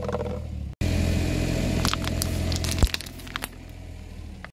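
Plastic candy toys crack under a rolling tyre.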